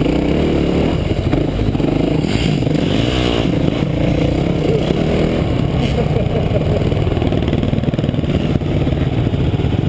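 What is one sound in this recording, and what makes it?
A dirt bike engine roars and buzzes up close, rising and falling with the throttle.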